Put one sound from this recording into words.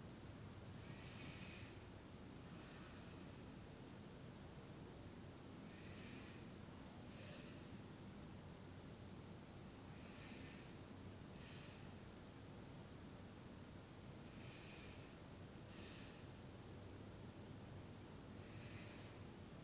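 A man breathes slowly and softly in and out, close by.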